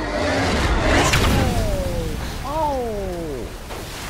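A fire roars loudly.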